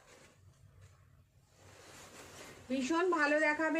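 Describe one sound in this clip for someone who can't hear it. Silk fabric rustles as it is unfolded.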